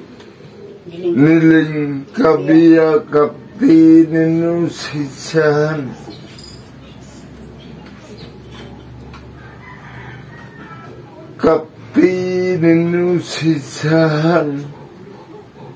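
An elderly man chants in a drawn-out voice close by.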